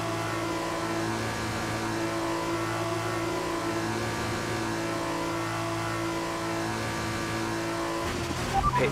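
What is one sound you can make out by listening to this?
A racing car engine hums steadily at a limited speed.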